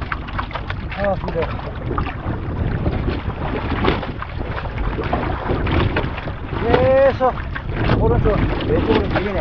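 A man speaks briefly in bursts nearby, partly covered by wind.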